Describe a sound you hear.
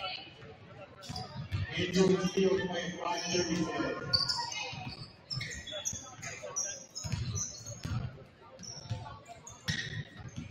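A crowd chatters and calls out in a large echoing gym.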